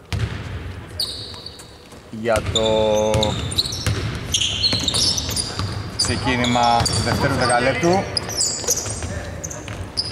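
Sneakers squeak on a hardwood court in a large echoing arena.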